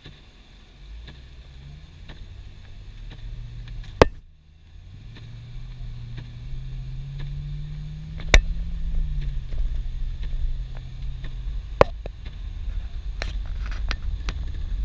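A car engine hums from inside the car and rises in pitch as the car pulls away.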